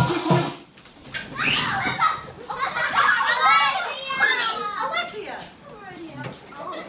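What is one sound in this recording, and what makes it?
Dance music with a singing voice plays loudly through loudspeakers in an echoing hall.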